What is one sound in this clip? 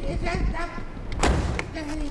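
A car door handle clicks.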